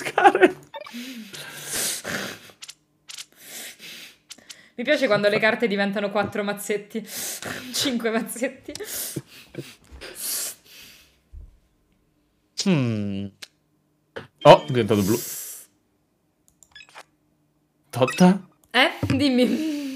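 Several young men talk and laugh with animation over an online call.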